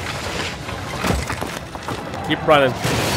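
A heavy blast booms and debris clatters.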